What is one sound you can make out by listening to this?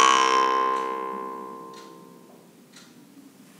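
A jaw harp twangs with a ringing drone that slowly fades.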